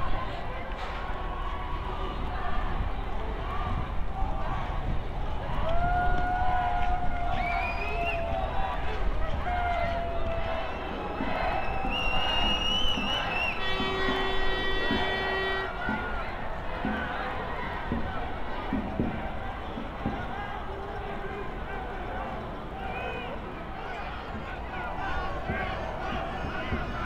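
A crowd of people chatters and shouts outdoors on a city street.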